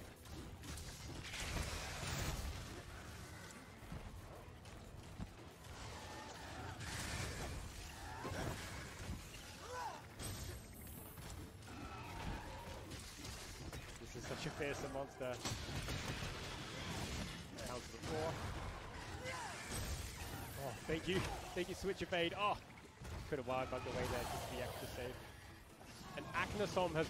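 Heavy blows and thuds of a monster fight sound throughout.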